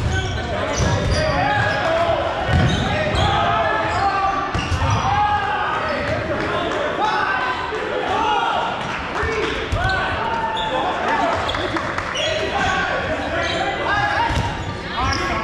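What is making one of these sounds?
Sneakers squeak sharply on a hard gym floor in a large echoing hall.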